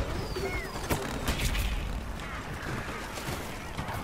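A cannon fires with booming blasts.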